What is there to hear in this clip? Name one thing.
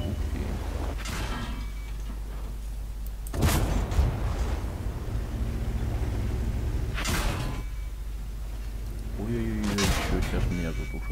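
A tank cannon fires with loud, sharp booms.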